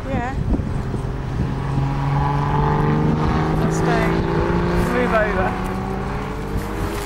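A hatchback's engine hums as it drives by.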